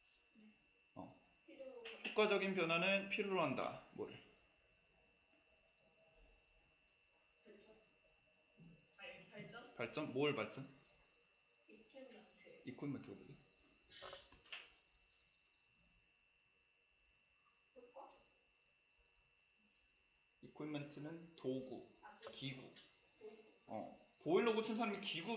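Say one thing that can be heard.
A young man talks calmly into a close microphone, in bursts with pauses.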